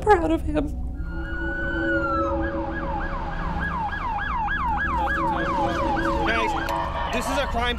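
A police siren wails, then yelps rapidly up and down.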